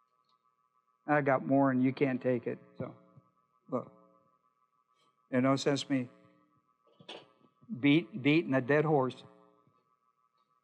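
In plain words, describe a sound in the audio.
An older man speaks calmly through a microphone, in short bursts with pauses.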